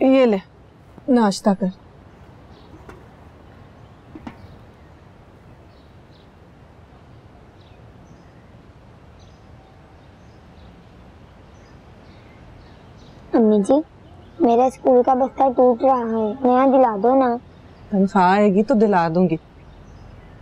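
A woman speaks quietly and calmly nearby.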